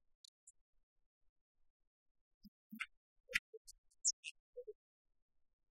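A badminton racket strikes a shuttlecock with sharp taps.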